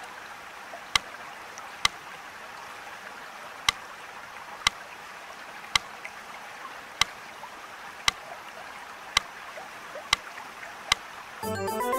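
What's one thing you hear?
Stones click softly into place, one after another.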